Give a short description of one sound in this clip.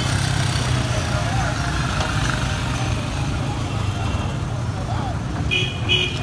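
Engines rumble steadily on a busy street.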